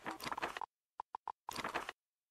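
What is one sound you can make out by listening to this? Short interface beeps sound as a menu opens and closes.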